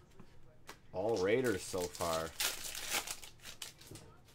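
A foil wrapper crinkles in someone's hands.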